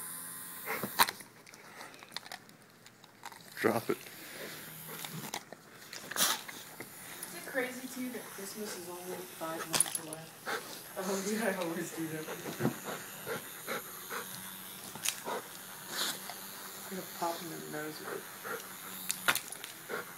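A dog's teeth knock and clatter against hard plastic.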